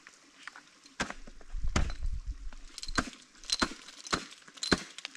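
Ice axes strike and chip sharply into hard ice.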